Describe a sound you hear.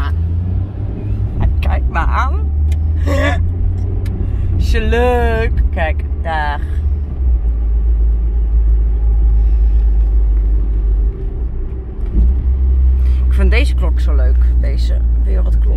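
A car engine hums low and steady inside the car while driving.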